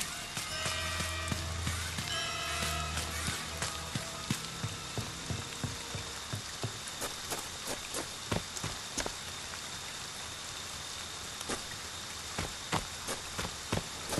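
Footsteps thud quickly on the ground.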